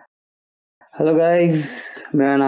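A man sings close by.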